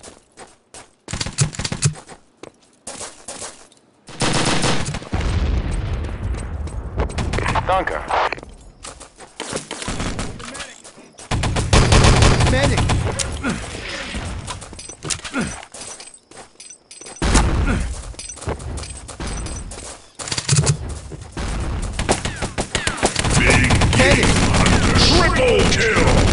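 Gunshots crack in rapid bursts nearby.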